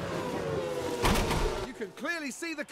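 A racing car crashes with a loud bang and scraping.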